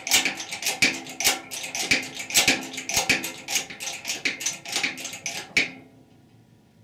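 A hydraulic bottle jack is pumped by hand with rapid metallic clicks.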